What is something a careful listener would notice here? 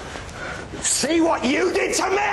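A man shouts angrily at close range.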